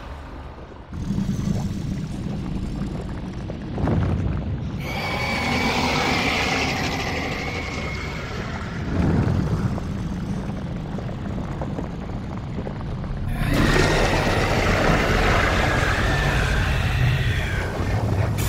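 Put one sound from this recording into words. A huge creature shatters apart with a deep rumbling crash.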